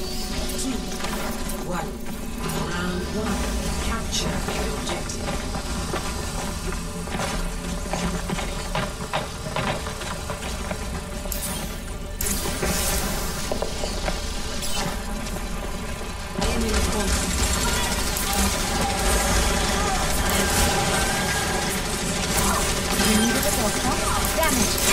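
A healing beam hums steadily.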